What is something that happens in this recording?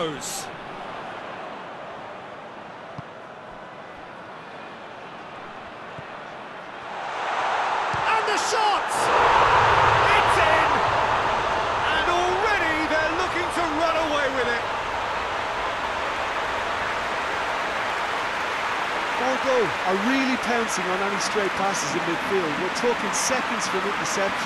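A large stadium crowd murmurs, then roars loudly.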